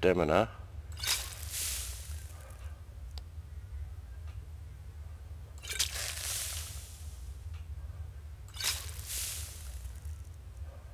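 Soft whooshing menu sounds play as items are selected.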